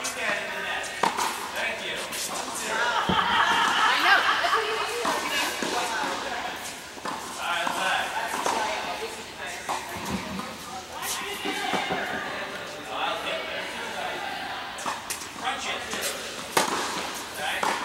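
Tennis rackets strike a ball back and forth in a large echoing indoor hall.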